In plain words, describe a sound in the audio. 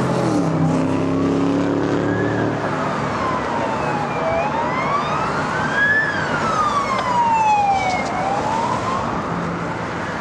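A siren wails, rising and falling slowly.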